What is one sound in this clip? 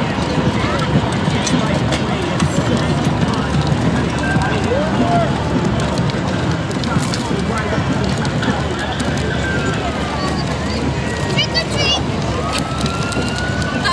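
A crowd of people chatters and calls out nearby outdoors.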